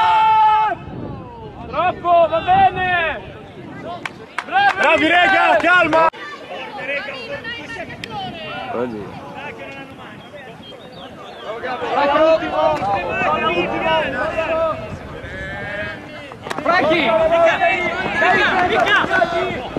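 Young men shout and cheer close by outdoors.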